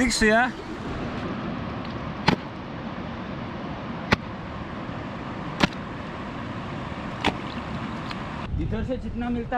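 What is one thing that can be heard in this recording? Water drips and splashes as a wet cloth is wrung out.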